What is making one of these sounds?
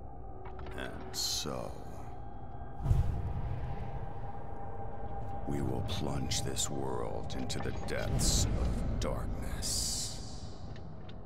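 A man speaks in a deep, slow voice.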